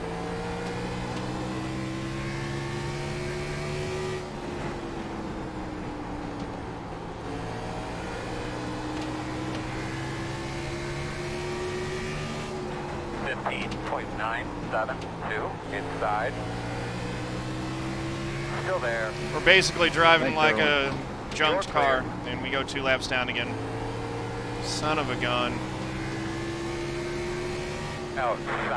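A racing car engine drones steadily, rising and falling in pitch as it speeds up and slows down.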